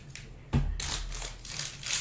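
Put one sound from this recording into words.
Paper cards rustle and slide against each other close by.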